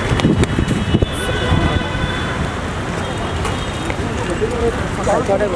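Footsteps tap on pavement at a walking pace.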